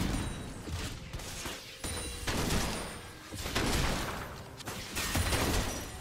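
Game spell effects whoosh and burst during a fight.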